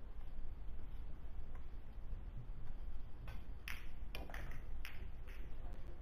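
Pool balls click together.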